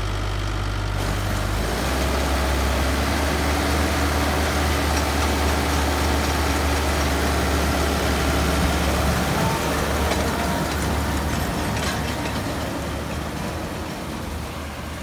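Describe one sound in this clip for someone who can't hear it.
A hay baler whirs and clatters as it gathers hay.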